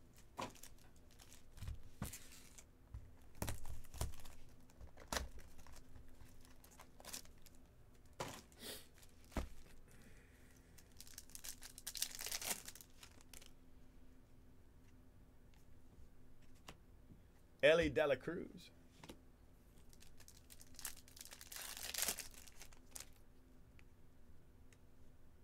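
Trading cards shuffle and slap softly against each other.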